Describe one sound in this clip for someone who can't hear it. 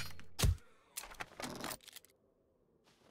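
A bolt is loaded into a crossbow with clicks.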